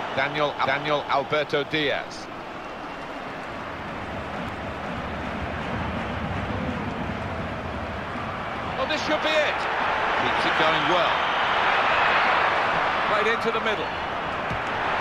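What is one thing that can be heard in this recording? A large stadium crowd roars steadily, swelling louder at times.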